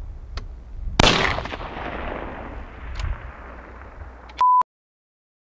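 A rifle fires a single loud shot that echoes and rolls away across a valley.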